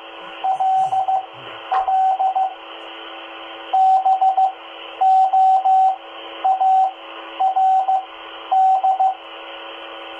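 Bursts of beeping tones come through a radio speaker.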